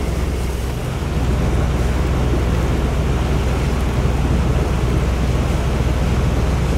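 Water rushes along a boat's hull.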